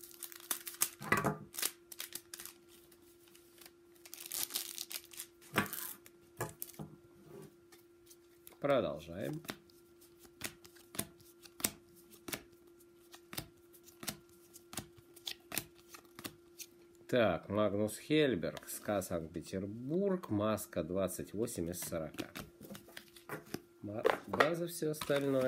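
Trading cards slap and click together as they are sorted.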